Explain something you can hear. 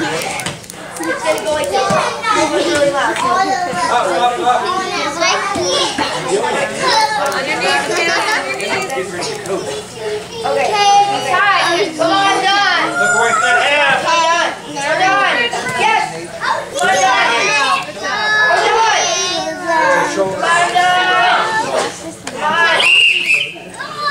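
Several adults shout encouragement loudly in a large echoing hall.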